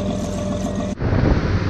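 Waves splash around a boat out on rough open water.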